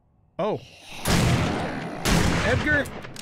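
A shotgun fires twice.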